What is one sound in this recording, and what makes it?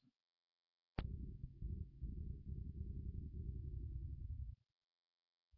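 A young boy blows into a small object held at his mouth, making a low buzzing rumble.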